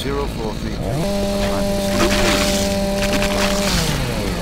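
A chainsaw revs up and roars steadily.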